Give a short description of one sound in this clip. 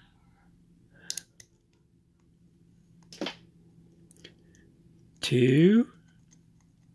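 A small metal tool clicks and scrapes inside a lock.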